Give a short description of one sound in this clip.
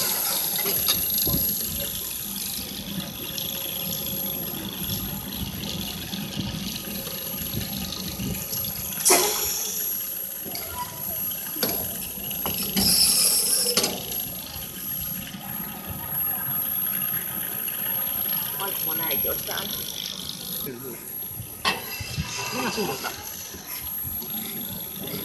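A small ride car rumbles and clatters along a track.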